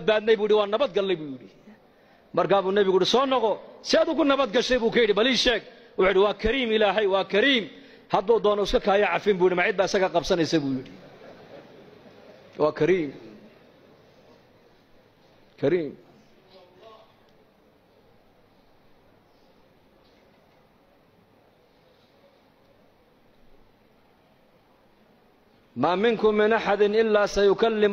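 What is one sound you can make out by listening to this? A man preaches forcefully into a microphone, in bursts with long pauses.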